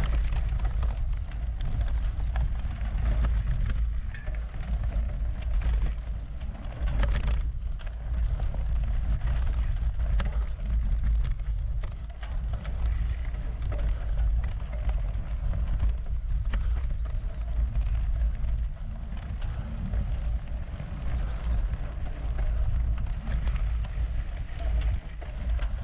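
Wind rumbles steadily over the microphone outdoors.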